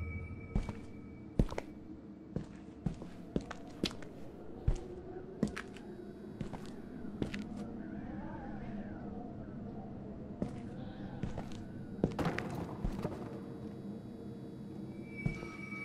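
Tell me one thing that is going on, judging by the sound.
Footsteps tap on a hard floor, echoing down a hallway.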